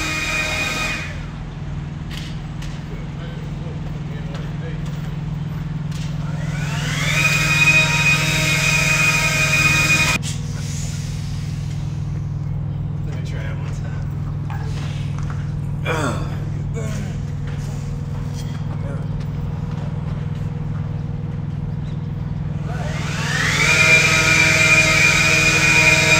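A leaf blower revs up to a loud, high whine and then cuts off, several times.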